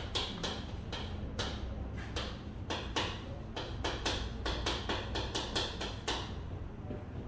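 Chalk taps and scratches quickly on a blackboard.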